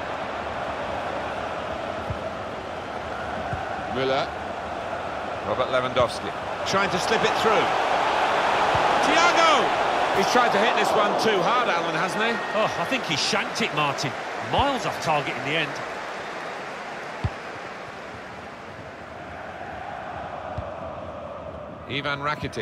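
A large stadium crowd roars, swelling as an attack builds toward the goal.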